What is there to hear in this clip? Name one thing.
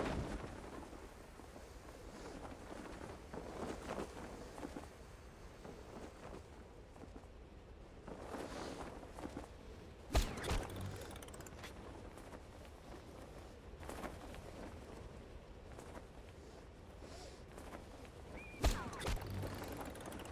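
Wind rushes steadily past a gliding parachute.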